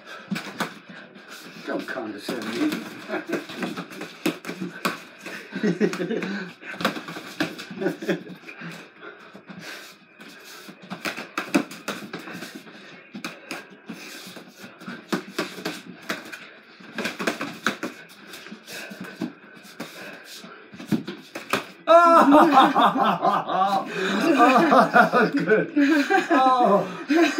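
Boxing gloves thud and smack against pads in quick bursts.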